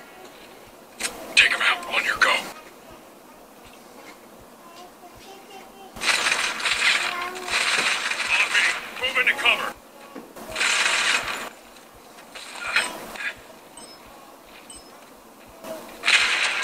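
Gunfire and explosions from a phone game play through a small speaker in bursts.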